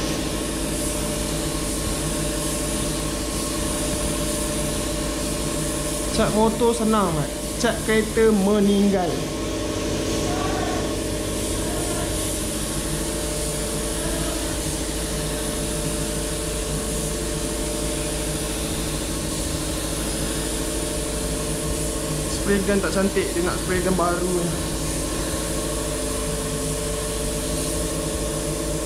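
A spray gun hisses steadily as it sprays paint.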